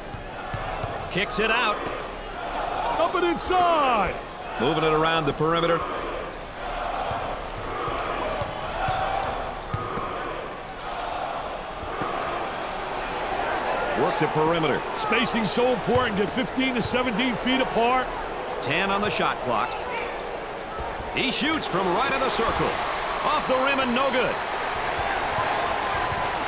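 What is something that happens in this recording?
A crowd murmurs and cheers steadily in a large echoing arena.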